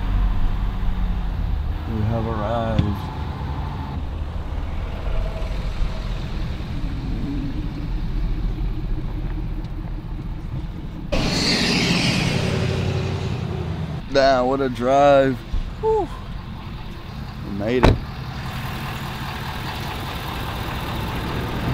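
A vehicle engine hums low and steady.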